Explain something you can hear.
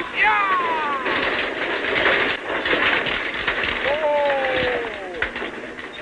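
A team of horses pulling a stagecoach clops on a dirt street and comes to a halt.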